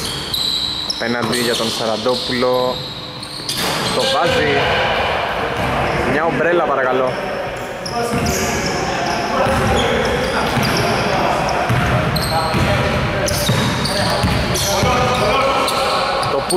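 Adult men shout to each other across a large echoing hall.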